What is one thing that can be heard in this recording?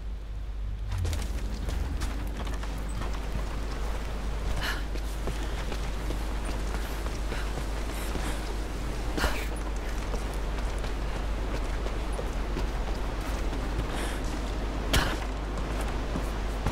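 Wind howls steadily through an icy cavern.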